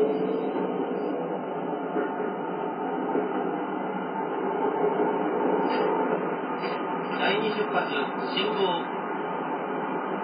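A train rumbles steadily along the rails, heard through a small loudspeaker.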